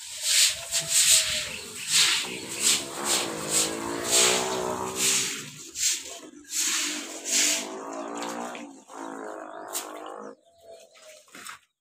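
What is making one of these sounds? Water gushes from a hose and splashes on the ground.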